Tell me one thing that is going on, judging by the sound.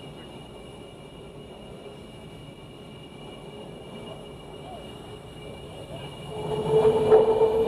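A twin-engine jet fighter idles on the ground with a steady high whine.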